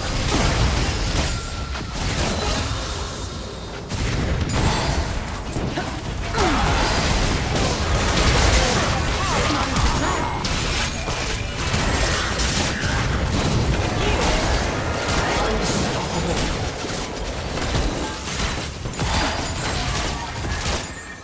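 Game spell effects and attacks crackle and boom in quick bursts throughout.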